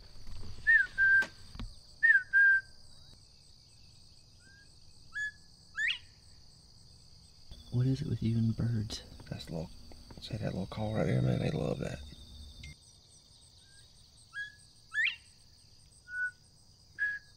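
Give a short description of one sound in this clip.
A bird chirps with short whistling calls outdoors.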